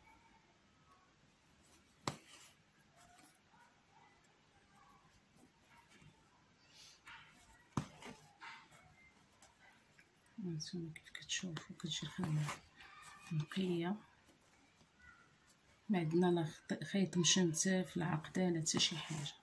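Thread softly rustles as it is drawn through fabric.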